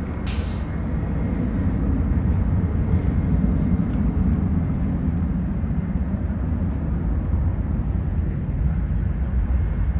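A jet airliner roars overhead as it comes in to land.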